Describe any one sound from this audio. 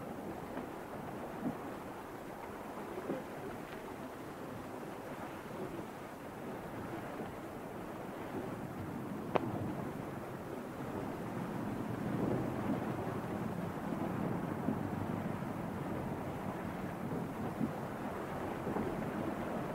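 Waves wash steadily against a boat's hull.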